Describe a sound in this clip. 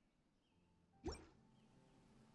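A soft whoosh sweeps quickly upward.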